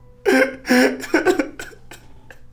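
A man laughs menacingly up close.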